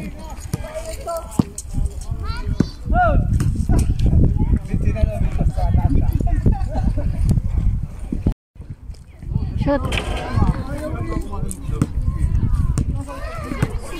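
A basketball bounces on hard ground.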